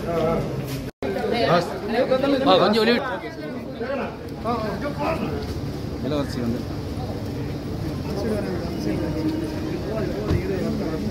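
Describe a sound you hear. A crowd of men talk and call out outdoors.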